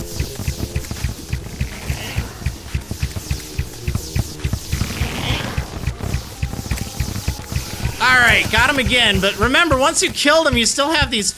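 Rapid game weapon shots fire in quick succession.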